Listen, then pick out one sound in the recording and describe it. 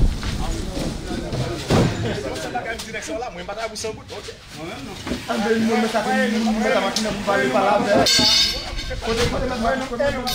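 Heavy bunches of bananas thump onto a truck floor.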